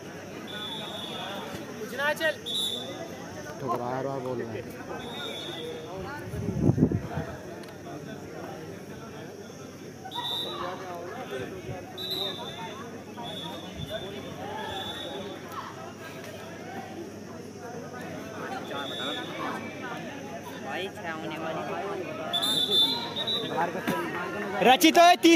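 Young men shout and call out outdoors.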